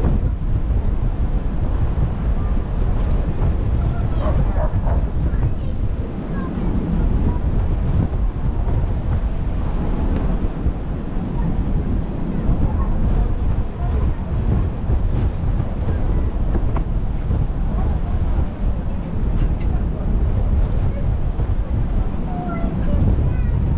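Water rushes past a ship's bow.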